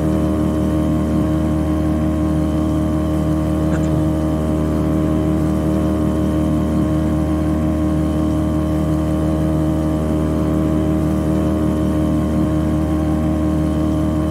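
A boat engine drones steadily at high speed.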